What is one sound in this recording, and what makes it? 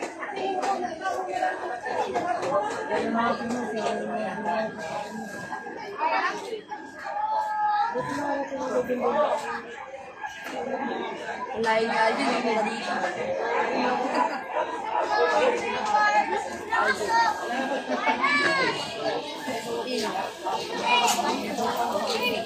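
A crowd of people shout and talk excitedly nearby, outdoors.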